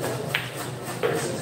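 A cue stick sharply strikes a billiard ball.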